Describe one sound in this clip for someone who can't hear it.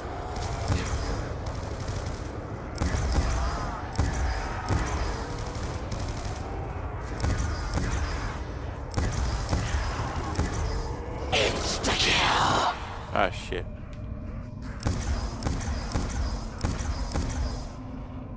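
Game gunfire bursts and crackles.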